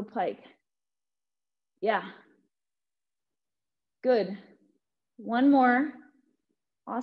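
A young woman speaks calmly in short phrases, close to a microphone.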